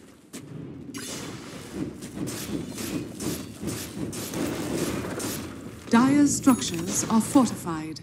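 Magic spells crackle and blast in a fast fight.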